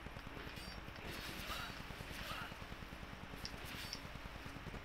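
Metal weapons clash and clang during a fight.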